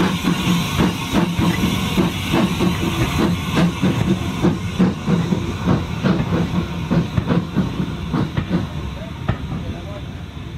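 A steam locomotive chuffs loudly as it pulls away and fades.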